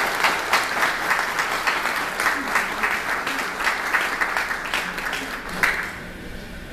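Several people clap their hands in a steady rhythm.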